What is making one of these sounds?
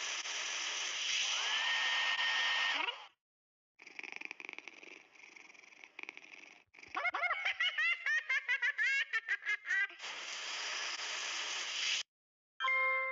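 Water sprays steadily from a shower.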